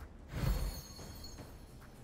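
Magic crackles and bursts.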